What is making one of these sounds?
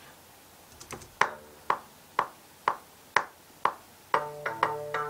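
Short plucked synthesizer notes play through loudspeakers in an even, steady rhythm.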